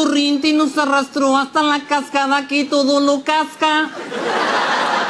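A group of men sings together in close harmony.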